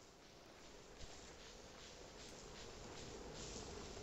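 Soft wind blows steadily.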